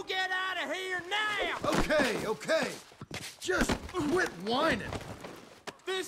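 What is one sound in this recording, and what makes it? A body thuds onto a wooden floor during a scuffle.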